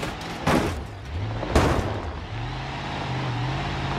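A car tumbles and thumps down a rocky slope.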